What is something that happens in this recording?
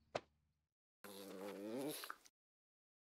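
A small creature lets out a loud, wavering cry.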